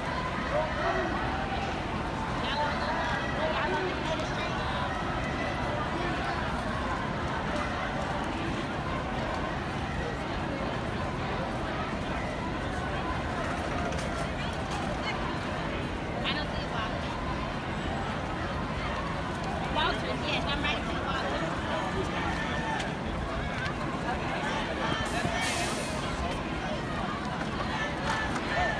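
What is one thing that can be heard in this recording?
A large crowd of marchers talks and calls out outdoors.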